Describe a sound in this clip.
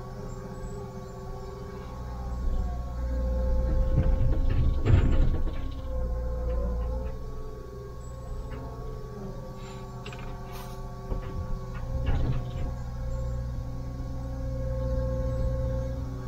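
A diesel engine hums steadily, heard from inside a cab.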